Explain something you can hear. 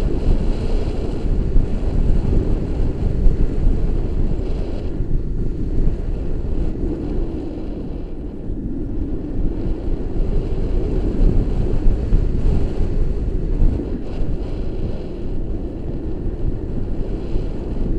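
Strong wind rushes and buffets loudly outdoors.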